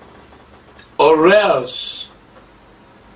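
A man gasps in surprise.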